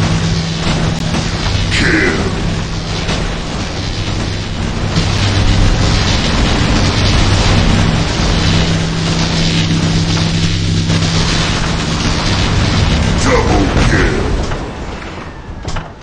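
Electric beam weapons crackle and buzz steadily.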